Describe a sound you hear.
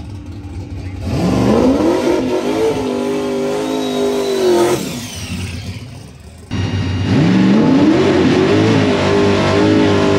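A race car engine revs loudly, rising in pitch again and again.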